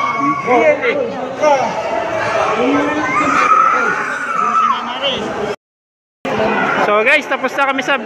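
Women chatter and laugh close by in a large echoing hall.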